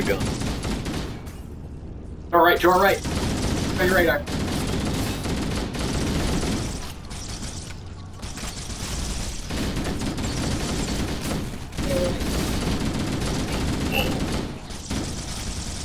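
Gunfire and explosions from a video game rattle steadily.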